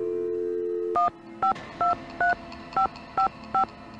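Phone keypad buttons beep in short tones as a number is dialled.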